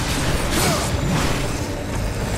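A blade swishes through the air.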